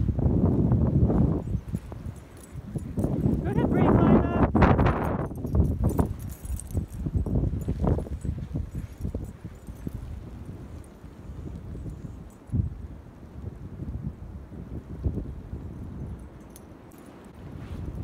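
A dog plows and bounds through deep snow with soft crunching.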